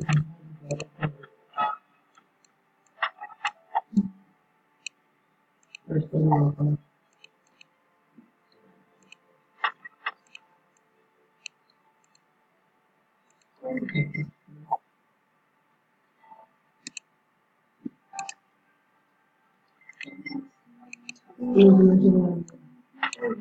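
Short electronic chimes and clicks sound as game menus open and coins are collected.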